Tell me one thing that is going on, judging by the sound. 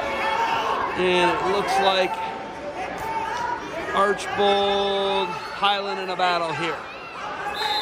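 Spectators shout and cheer loudly.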